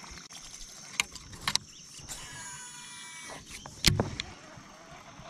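A fishing rod and reel knock and rattle as they are handled close by.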